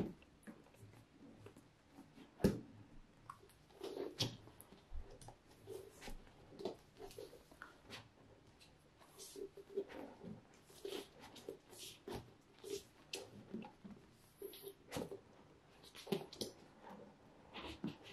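A cardboard box slides across a wooden table.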